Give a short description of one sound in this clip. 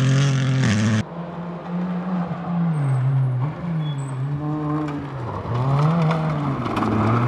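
A rally car engine revs up and down as it passes close by.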